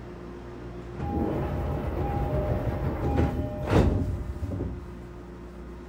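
Train wheels rumble louder over the rails and then settle.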